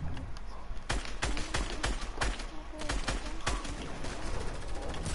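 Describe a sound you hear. A gun fires a burst of sharp shots.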